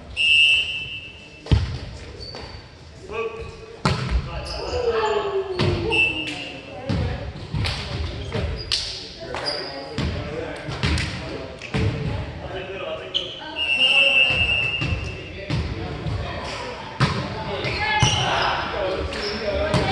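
Men call out and talk in a large echoing gym.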